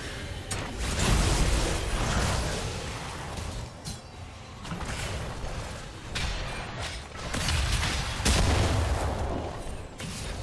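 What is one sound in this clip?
Heavy blasts boom with a deep rumble.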